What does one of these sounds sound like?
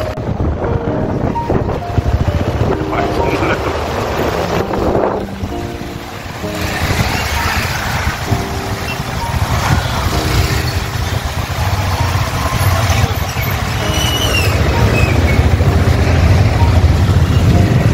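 Motorcycle engines rumble close by.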